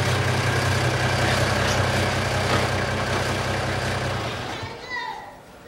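A truck engine idles loudly, then shuts off.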